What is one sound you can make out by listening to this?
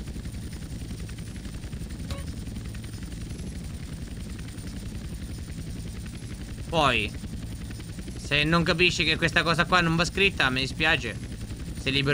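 A helicopter's rotor drones steadily while it hovers.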